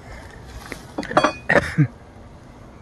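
A wooden hive frame knocks against a hive box.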